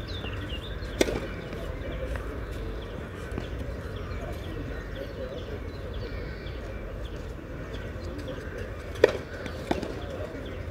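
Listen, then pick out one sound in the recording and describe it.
A tennis ball is struck with a racket, with sharp pops.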